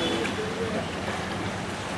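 Water splashes as a man scoops it up with a bucket.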